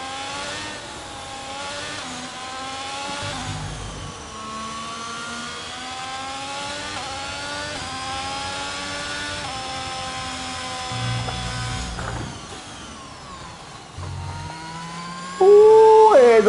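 A racing car engine whines, rising in pitch as it speeds up and dropping as it shifts gears.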